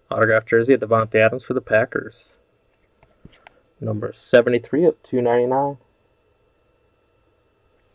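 Stiff cards rustle and tap softly as hands handle them.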